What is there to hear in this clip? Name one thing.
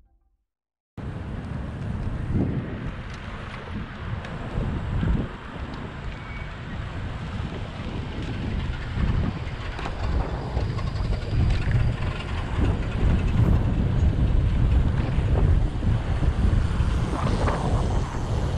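Wind rumbles steadily past a moving bicycle outdoors.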